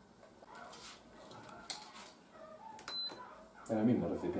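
Utensils clink and clatter against dishes.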